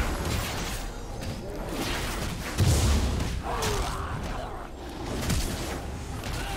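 Weapons clash with sharp hits.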